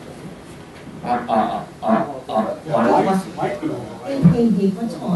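A middle-aged man speaks steadily into a microphone through a loudspeaker.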